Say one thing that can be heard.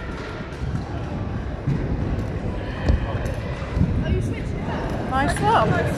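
Wheelchair wheels roll over a concrete floor.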